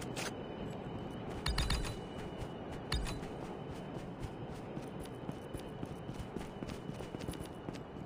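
Footsteps run over ground.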